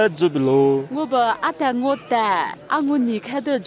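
A young girl speaks with animation.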